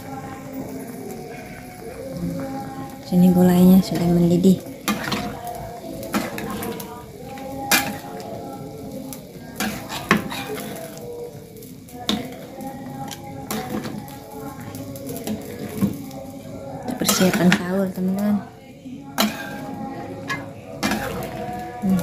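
A thick sauce bubbles and simmers in a pan.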